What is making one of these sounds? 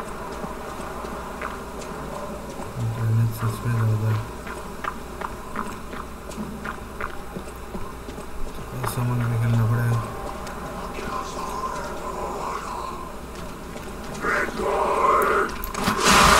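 Footsteps crunch on dirt and wooden planks.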